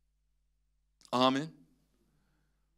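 An elderly man speaks briefly into a microphone, heard through a loudspeaker.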